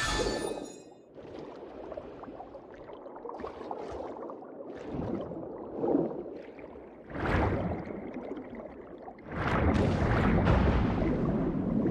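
Water swishes and churns in surges as a character swims underwater.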